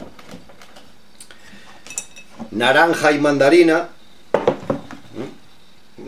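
Glass jars clink as a man lifts them.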